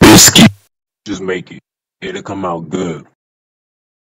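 A young man talks with animation.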